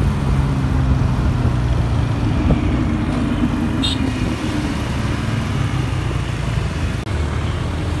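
A Lamborghini Huracán V10 idles with a deep burble.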